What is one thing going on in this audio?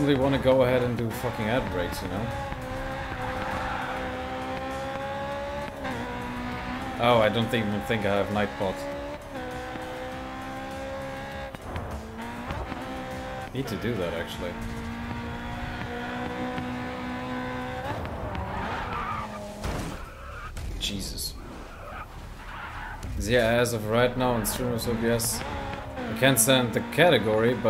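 A racing car engine roars and climbs in pitch through quick gear changes.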